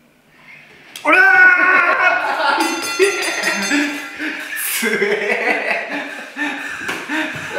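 Two young men laugh loudly.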